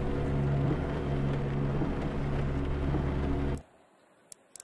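A racing car engine idles with a steady low hum.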